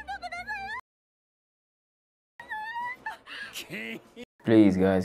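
A young man speaks and exclaims close to a microphone.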